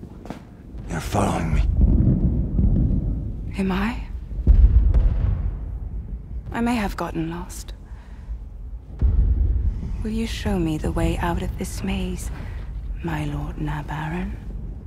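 A woman speaks softly and tensely, close by.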